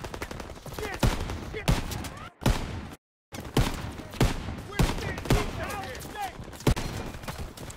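A rifle fires loud single shots, one after another.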